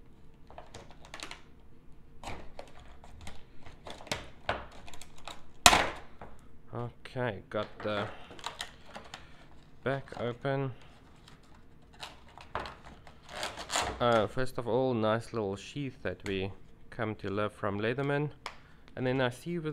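Plastic packaging crinkles and crackles as hands handle it.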